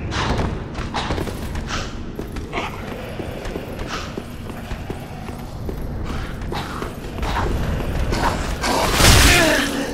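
Armored footsteps thud and clink quickly on stone.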